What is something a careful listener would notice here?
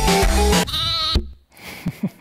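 A lamb bleats nearby.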